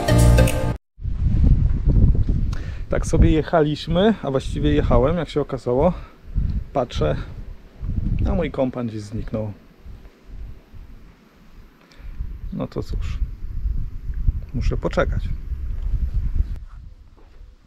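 A man talks calmly and close up, outdoors in wind.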